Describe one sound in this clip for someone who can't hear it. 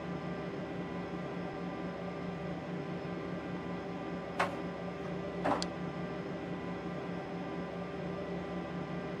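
Jet engines hum steadily.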